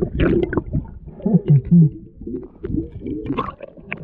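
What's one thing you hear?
Air bubbles gurgle and burst underwater.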